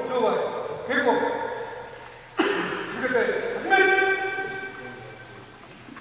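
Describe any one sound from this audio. A man shouts commands loudly in an echoing hall.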